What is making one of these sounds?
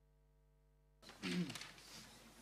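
A choir begins to sing.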